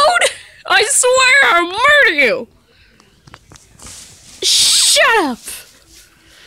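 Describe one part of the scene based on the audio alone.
An electronic toy chatters in a high, squeaky, warbling voice.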